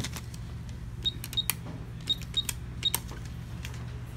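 Keypad buttons beep briefly as they are pressed.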